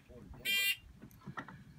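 A shot timer beeps.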